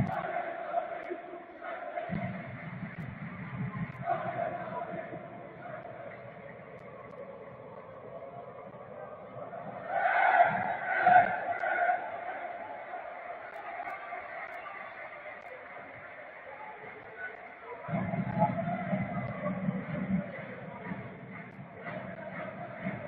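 A crowd murmurs and chatters in a large open stadium.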